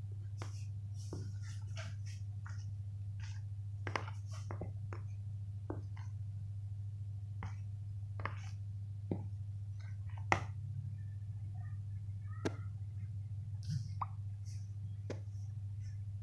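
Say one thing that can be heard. A spatula scrapes and taps against a bowl while stirring flour.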